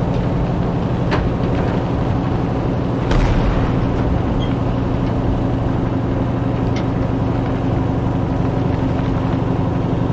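A heavy vehicle's engine rumbles steadily as it drives.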